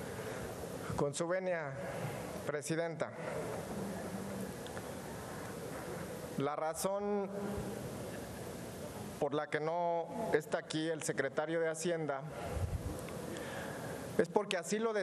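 A middle-aged man speaks firmly into a microphone in a large echoing hall.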